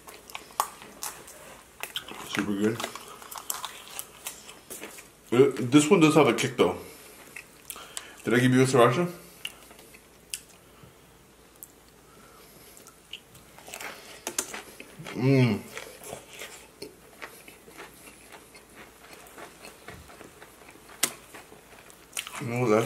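A young man chews and bites crunchy food close to a microphone.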